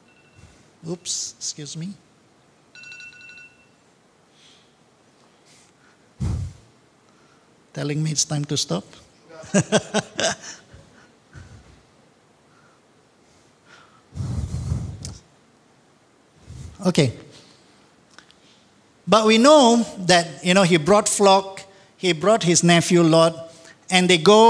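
An elderly man speaks into a microphone through a loudspeaker, with pauses, in a room with some echo.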